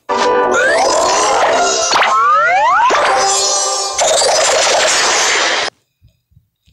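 Bright game chimes and a cheerful jingle play with quick rising sweeps.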